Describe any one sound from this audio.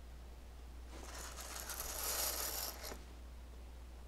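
A curtain swishes as it is pulled aside.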